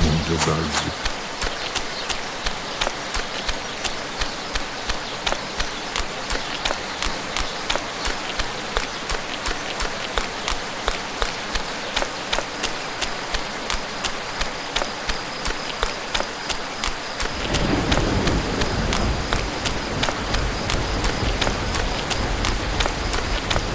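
Footsteps crunch along a dirt path at a steady pace.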